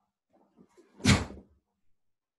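A man's foot stamps on a wooden floor.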